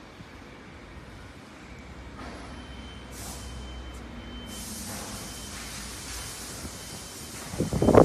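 An electric forklift's motor whines as the forklift rolls along.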